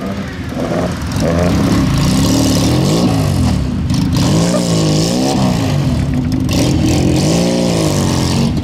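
A rally car engine revs hard, its pitch rising and falling as it slides through a bend.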